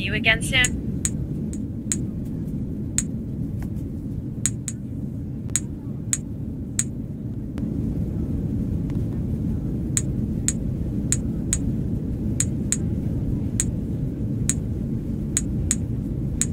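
Short pops sound as rubbish is picked up, one after another.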